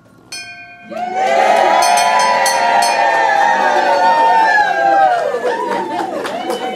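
A crowd of people cheers loudly together.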